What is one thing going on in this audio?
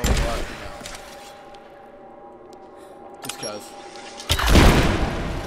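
A bow string twangs as an arrow is loosed.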